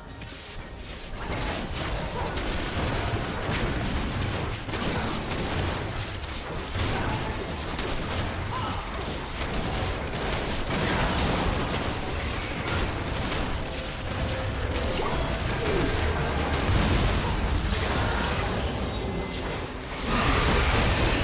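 Game spell effects and attacks crackle and boom.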